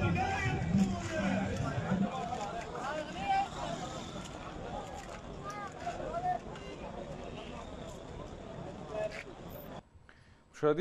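A crowd of people shout and chant outdoors.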